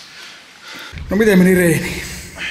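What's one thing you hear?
A young man laughs loudly up close.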